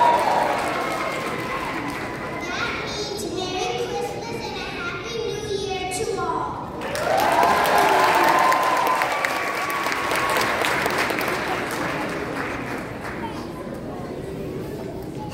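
A children's choir sings in a large echoing hall.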